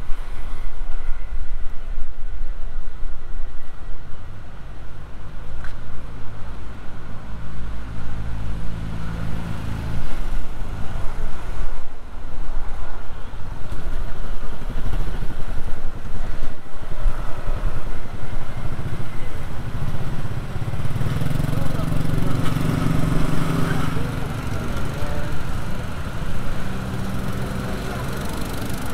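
Footsteps tap on a paved walkway.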